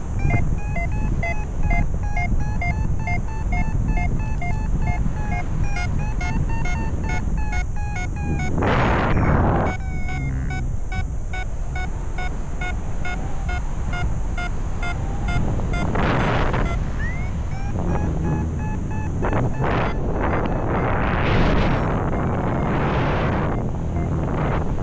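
Wind rushes and buffets loudly, outdoors high in the air.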